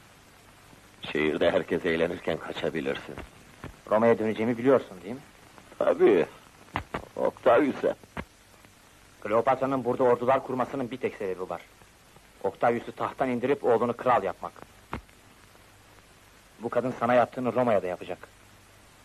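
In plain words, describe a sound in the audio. Two men talk with each other in tense voices, close by.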